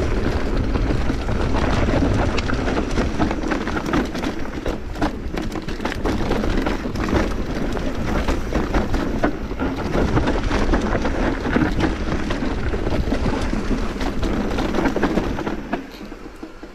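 Wind rumbles loudly past the rider.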